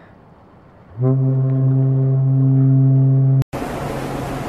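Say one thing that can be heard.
A ship's horn blasts a long, deep, steady note.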